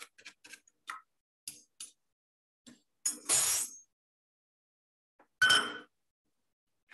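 Metal bowls and utensils clink and clatter.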